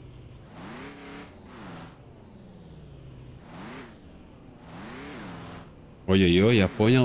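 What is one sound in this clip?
A car engine revs up and down.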